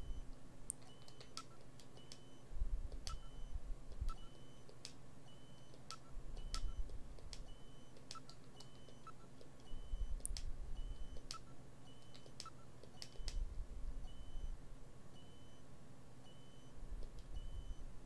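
Short electronic beeps blip repeatedly.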